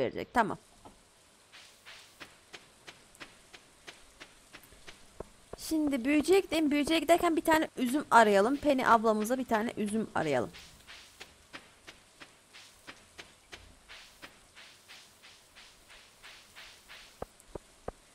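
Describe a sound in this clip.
Footsteps tap quickly and steadily along the ground.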